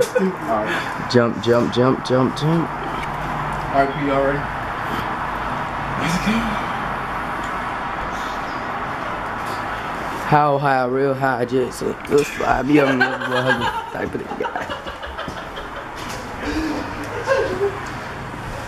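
A young man talks casually close by.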